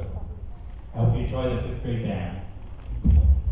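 A man speaks aloud in a large echoing hall.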